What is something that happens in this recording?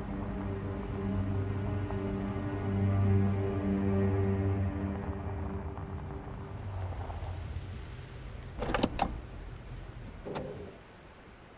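A car engine rumbles steadily, then winds down and stops.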